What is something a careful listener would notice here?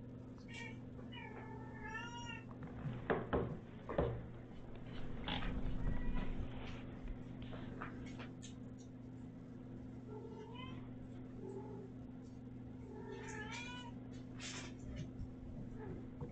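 A cat rustles and scratches against a soft fabric bed on a rug.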